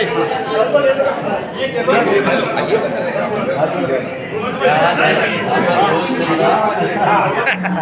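A middle-aged man talks with animation nearby.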